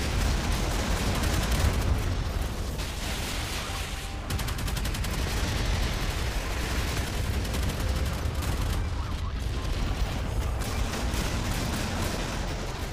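Naval guns fire in rapid bursts.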